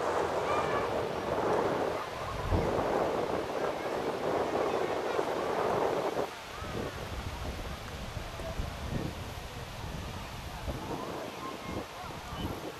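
Players and spectators call out faintly across an open field.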